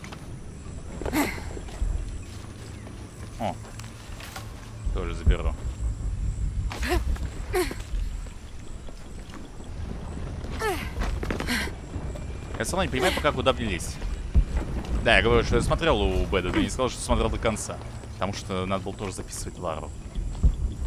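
A young man talks casually into a microphone, in bursts with pauses.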